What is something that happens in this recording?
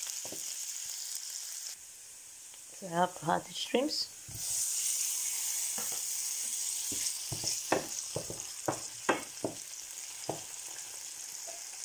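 Food sizzles in hot oil in a frying pan.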